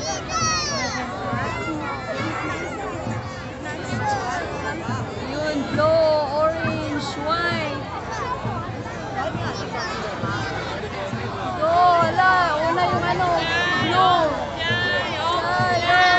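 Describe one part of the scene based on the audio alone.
A large crowd of people cheers and shouts outdoors.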